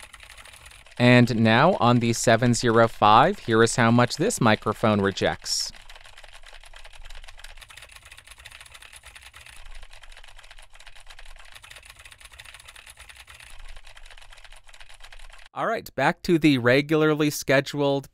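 A young man speaks with animation, close into a microphone.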